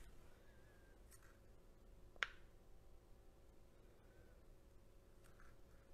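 A stick scrapes softly against a plastic cup.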